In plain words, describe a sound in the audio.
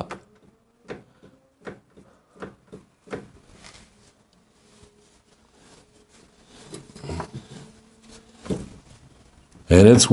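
Metal tools clink and knock against a motorcycle.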